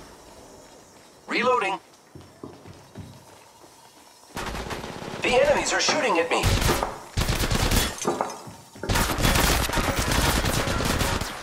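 Footsteps run across a hard floor.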